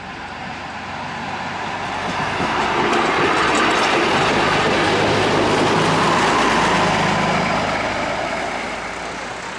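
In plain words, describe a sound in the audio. A railcar rumbles loudly past on the rails.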